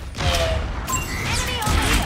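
An explosion bursts nearby.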